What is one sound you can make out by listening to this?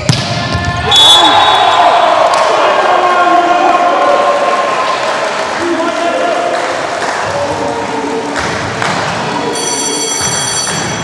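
A crowd in a large echoing hall cheers and shouts.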